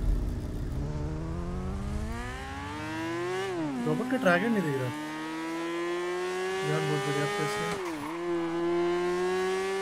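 A motorcycle engine revs up and drones as the bike rides along, rising and falling in pitch with gear changes.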